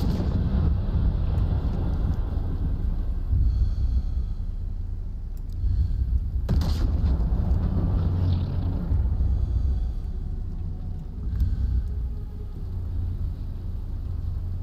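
Wind rumbles steadily and low outdoors.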